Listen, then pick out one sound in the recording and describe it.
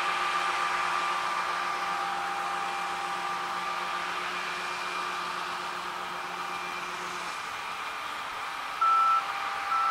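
Grain pours with a steady rushing hiss into a trailer.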